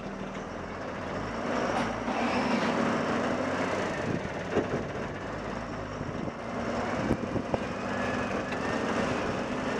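Tyres roll over the ground as a vehicle pulls away.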